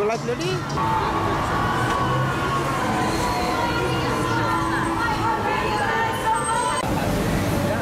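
Pop music plays loudly from a nearby bar.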